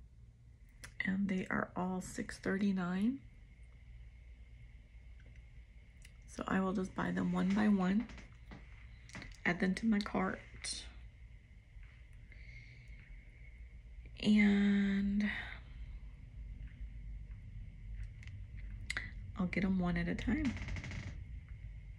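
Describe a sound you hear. A middle-aged woman speaks calmly and close by, in short phrases with pauses.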